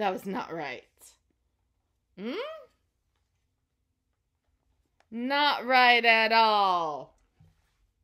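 A woman reads aloud up close in playful, expressive character voices.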